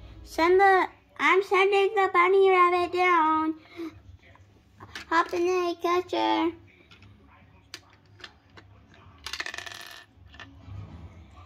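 Small plastic toy pieces click and rattle as they are handled.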